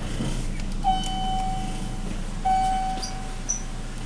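An elevator door slides open.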